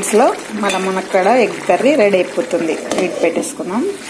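A lid clinks onto a pan.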